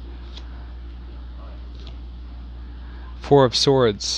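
A playing card is laid down softly onto other cards.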